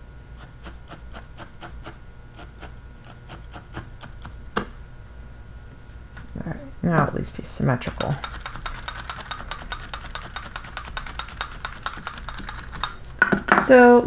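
A felting needle tool pokes into wool with soft rapid clicks.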